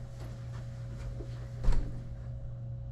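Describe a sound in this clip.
A couch creaks as a young man sits down.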